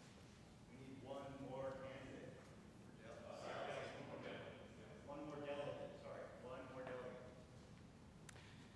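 A man speaks quietly at a distance in a room with some echo.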